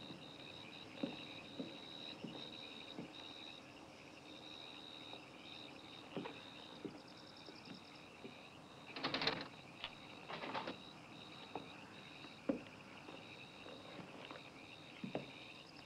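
Footsteps walk slowly on hard ground.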